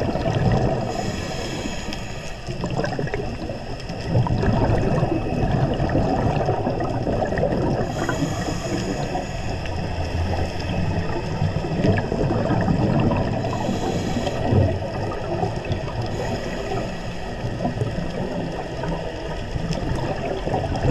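Scuba divers' exhaled air bubbles gurgle and rumble loudly underwater.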